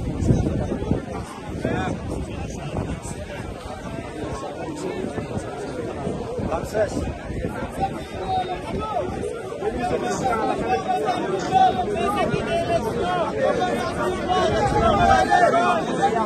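A crowd chatters and shouts outdoors.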